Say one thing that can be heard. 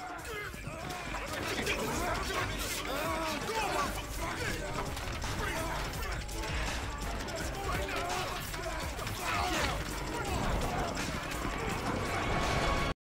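Bodies scuffle and thump on a hard floor.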